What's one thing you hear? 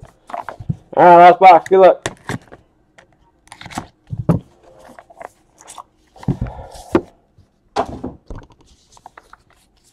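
A small cardboard box is tapped and opened by hand.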